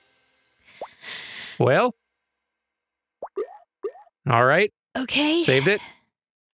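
Cheerful, cartoonish game sound effects play in short bursts.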